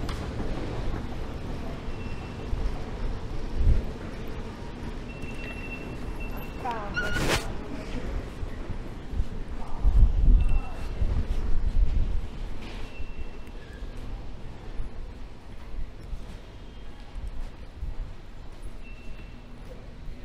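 Ticket gates beep with short high tones.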